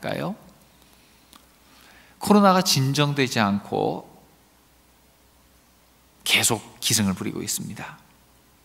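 A middle-aged man speaks with feeling into a microphone, in short phrases with pauses.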